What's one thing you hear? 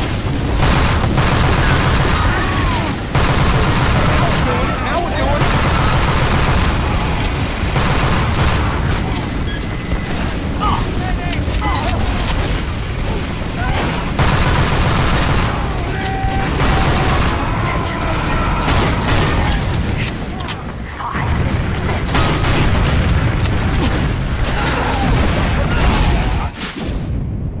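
Rapid gunfire rattles and crackles.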